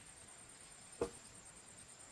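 A bamboo pole drops to the ground with a sharp knock.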